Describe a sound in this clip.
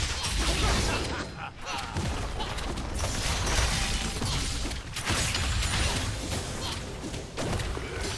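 Game spell effects whoosh and hits clash in a fantasy battle.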